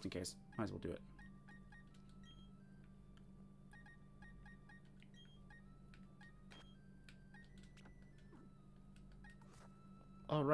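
Short electronic menu blips chime.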